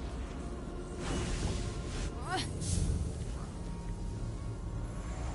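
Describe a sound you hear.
A magical energy beam crackles and hums.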